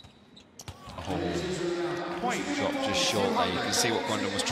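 A crowd cheers and applauds loudly in a large echoing hall.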